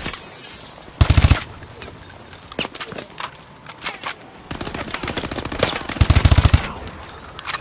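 A rifle fires short rapid bursts at close range.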